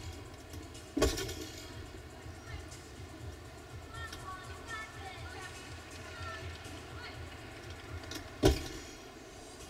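Feet land with a heavy thud on a wooden beam.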